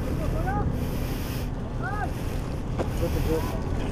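A plastic bag crinkles and rustles in hands.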